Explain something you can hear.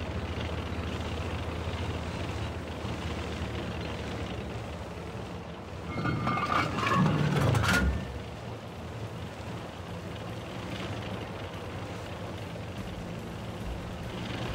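A tank engine rumbles steadily as the tank drives over sand.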